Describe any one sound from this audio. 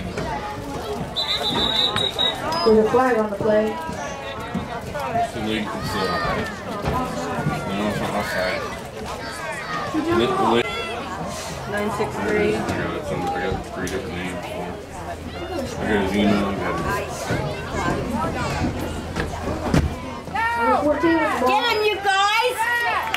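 Adults on the sideline talk and cheer outdoors.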